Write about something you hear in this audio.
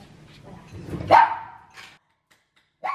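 A small dog howls briefly.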